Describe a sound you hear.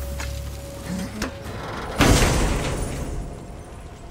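A heavy chest lid creaks open.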